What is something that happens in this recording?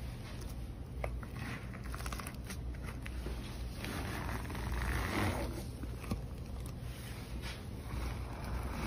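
A flat tool scrapes soft material off a bumpy surface with a sticky rasping sound.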